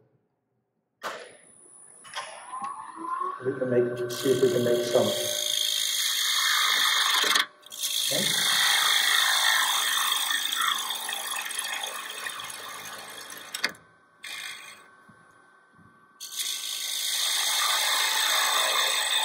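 A wood lathe whirs as it spins.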